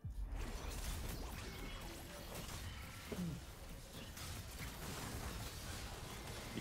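Game combat effects crackle, whoosh and clash in rapid bursts.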